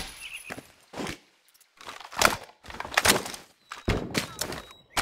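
A rifle magazine clicks out and snaps back in.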